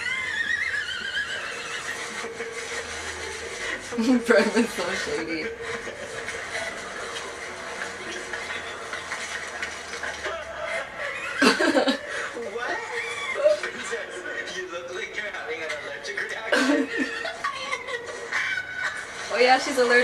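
A young man laughs, heard through a speaker.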